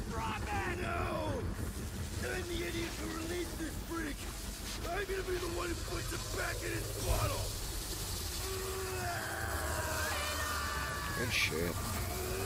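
A man speaks with effort.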